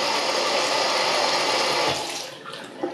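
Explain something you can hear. Water gushes steadily from a tap.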